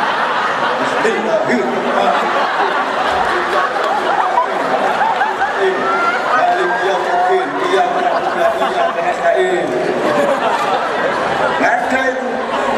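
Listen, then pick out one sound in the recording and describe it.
A man sings into a microphone over loudspeakers in a large hall.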